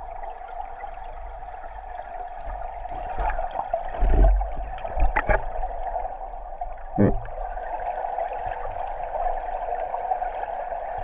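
Water rushes and bubbles steadily, heard from underwater.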